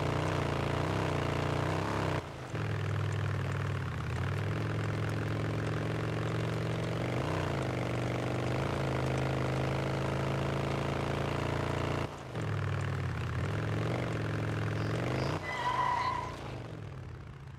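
A motorcycle engine hums steadily and revs as it rides along.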